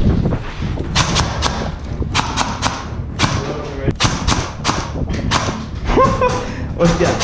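An airsoft gun fires a rapid series of sharp shots.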